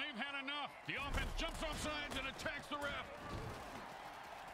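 Players collide with heavy thuds.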